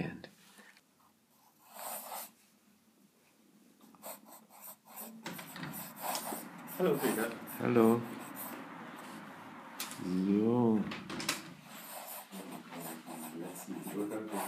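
A pen nib scratches across paper.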